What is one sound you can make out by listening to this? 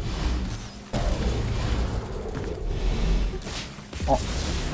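A fiery blast roars with a deep, rumbling boom.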